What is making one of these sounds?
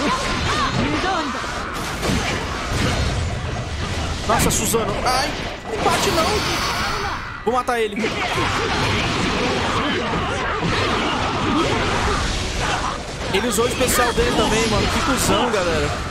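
Swords clash and slash in a fierce battle.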